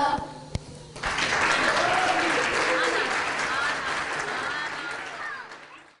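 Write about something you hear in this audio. Young children chatter and call out excitedly.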